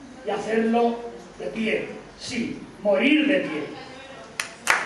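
An elderly man speaks expressively into a microphone in an echoing hall.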